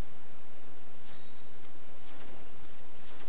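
Short game interface clicks sound as items are crafted.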